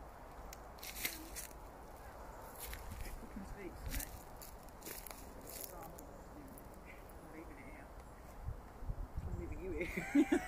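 Footsteps crunch on a dry forest floor.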